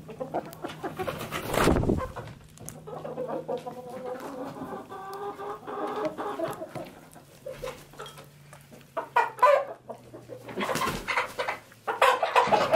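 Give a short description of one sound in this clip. Hens peck at food in a bowl with quick taps.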